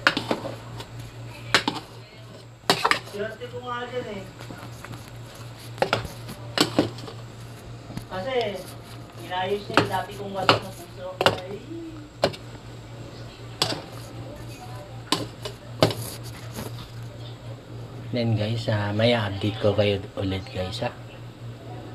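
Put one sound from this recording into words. A metal ladle clanks against a cooking pot now and then.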